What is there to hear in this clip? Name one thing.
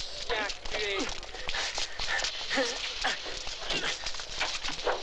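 Men shout angrily during a struggle.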